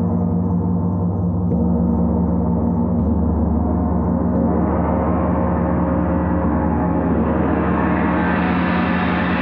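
A large gong hums deeply and swells steadily louder.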